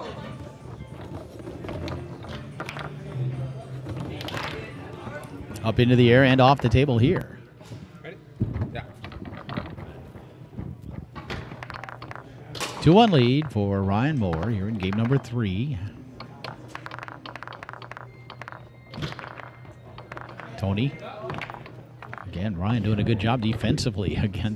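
Metal rods rattle and thud as players spin and slide them.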